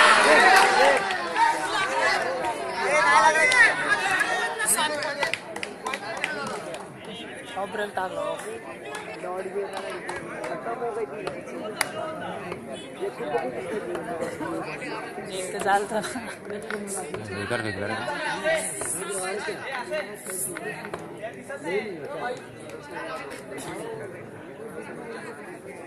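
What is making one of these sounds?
A crowd of men shouts and chatters outdoors.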